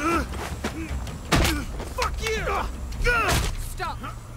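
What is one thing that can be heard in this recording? Blows land with sharp thuds during a scuffle.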